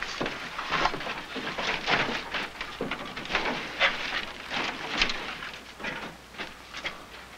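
Wooden crates knock and clatter as they are moved.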